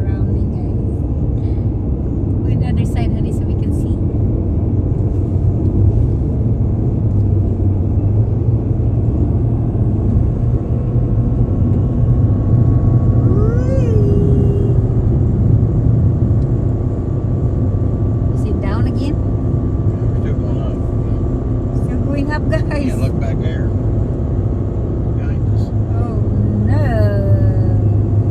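Steady road noise and a low engine hum fill the inside of a moving car.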